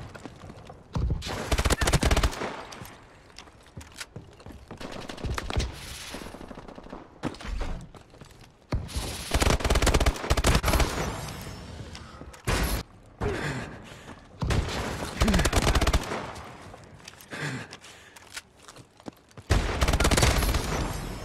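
Automatic gunfire rattles in loud, rapid bursts.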